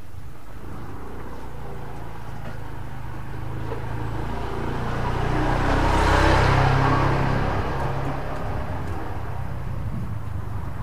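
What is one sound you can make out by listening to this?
A motorbike engine rumbles closer, passes by and fades.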